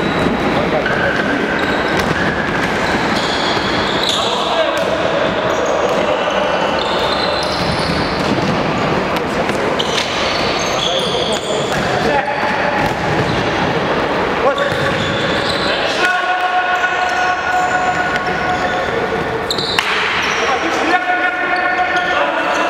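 A ball thuds off feet and echoes around a large hall.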